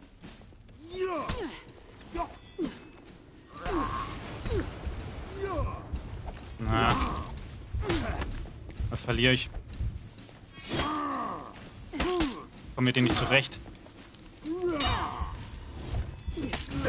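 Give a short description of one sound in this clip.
Metal blades clash and strike in a sword fight.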